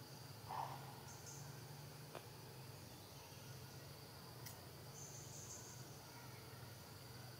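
A baby monkey suckles softly at close range.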